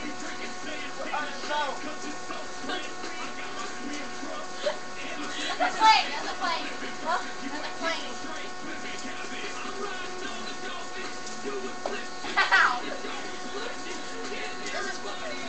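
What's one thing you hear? Young girls laugh and shout with excitement close by.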